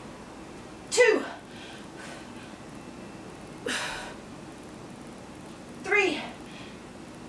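A woman grunts and exhales hard with effort.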